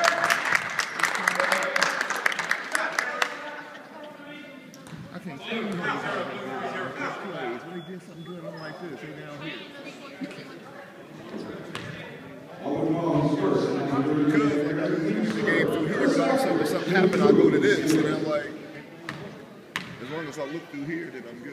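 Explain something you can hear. A crowd of spectators talks and cheers loudly.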